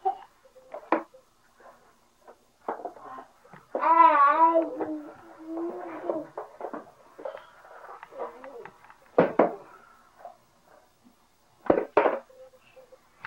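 Cardboard blocks knock and tap together.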